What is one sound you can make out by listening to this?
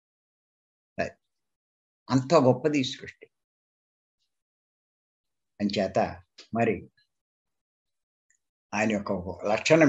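An elderly man speaks with animation over an online call, in bursts with pauses.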